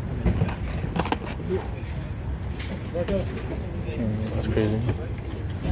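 Small objects knock and rattle as they are handled.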